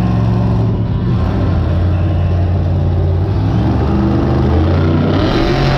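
A monster truck engine roars loudly in a large echoing arena.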